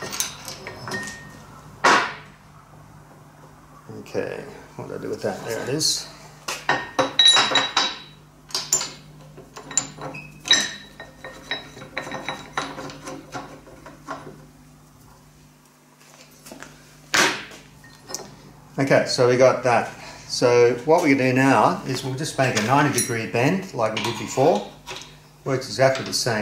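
Metal parts clank and knock against a metal bending tool.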